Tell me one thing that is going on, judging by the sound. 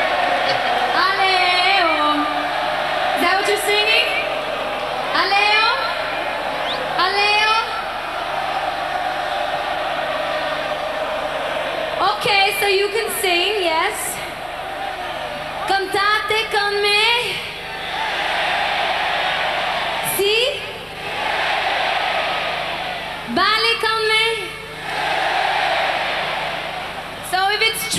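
A woman sings with animation into a microphone over a loudspeaker system.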